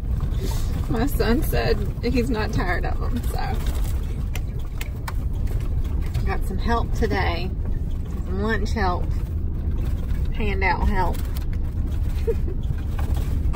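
A young girl talks calmly up close.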